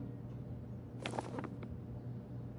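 A paper booklet rustles as it is turned over.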